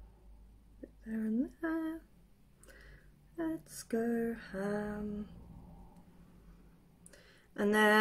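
A woman talks calmly and close by, in short bursts.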